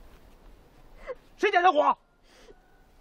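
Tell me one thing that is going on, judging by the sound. A man speaks loudly outdoors to a group.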